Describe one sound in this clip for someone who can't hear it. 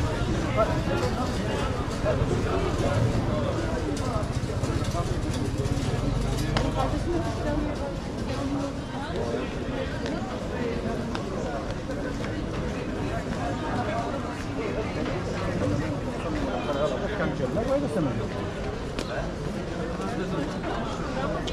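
Footsteps shuffle on paving stones.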